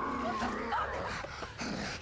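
A young woman shouts in alarm.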